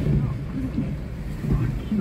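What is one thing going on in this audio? A car drives through deep flood water with a splashing wash.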